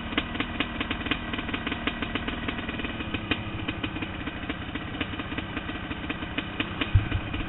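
A dirt bike engine revs and rattles close by.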